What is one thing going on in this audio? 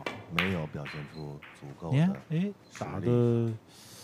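Snooker balls click together on the table.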